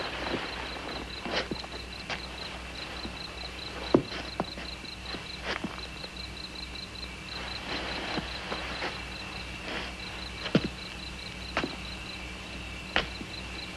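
Cloth rustles and thumps as a boy gathers clothes.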